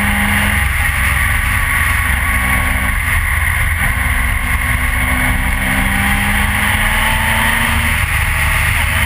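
A motorcycle engine drones steadily up close.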